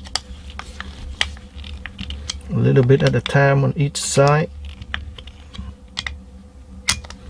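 A screwdriver tip clicks and scrapes against a metal part.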